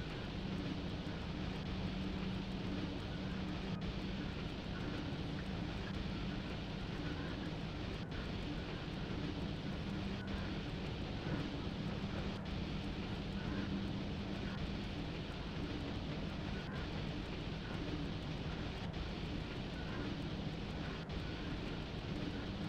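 A locomotive engine hums steadily.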